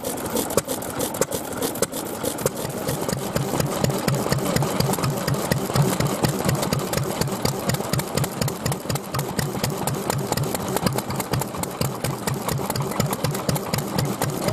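An old stationary engine chugs and pops in a steady, rapid rhythm.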